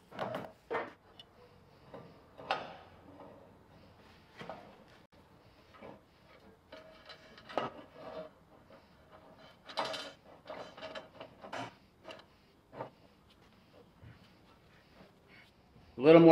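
Metal bars clank and scrape against each other in short bursts.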